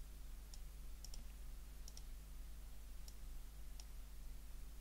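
Soft game clicks sound several times.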